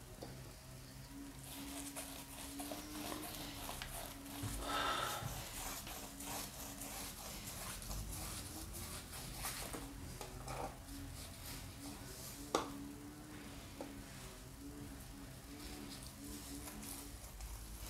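Small objects clink and clatter as a man works by hand nearby.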